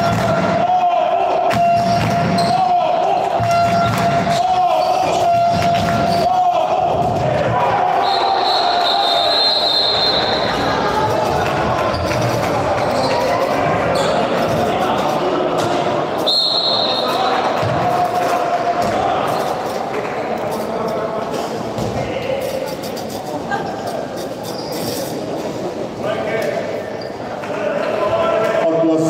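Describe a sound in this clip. Spectators chatter nearby.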